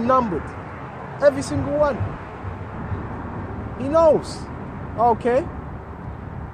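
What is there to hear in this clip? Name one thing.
A young man speaks close by in short, lively phrases.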